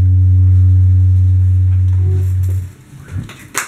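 An electric bass guitar rings out a low sustained note, then stops.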